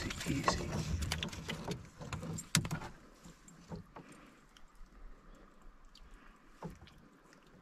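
A wooden paddle knocks against the side of a canoe.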